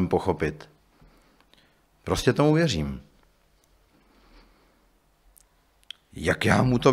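A man speaks calmly into a microphone, with pauses between phrases.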